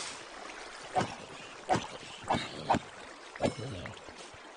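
A pickaxe knocks against stone several times.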